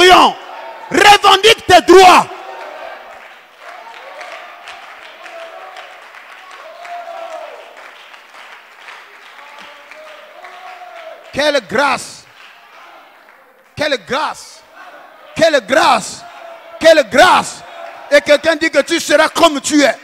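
A man preaches loudly into a microphone, shouting in bursts through loudspeakers.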